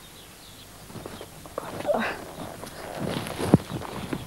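A rider thumps and rustles while climbing onto a horse.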